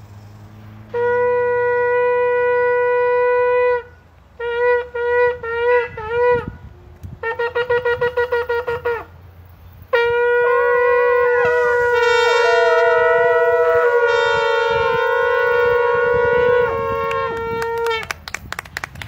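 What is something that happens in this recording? A ram's horn blows long, short and quavering blasts.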